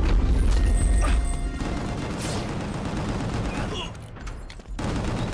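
Loud electronic music plays with a heavy pounding beat.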